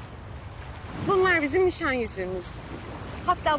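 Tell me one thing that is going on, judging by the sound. A young woman speaks with feeling close by.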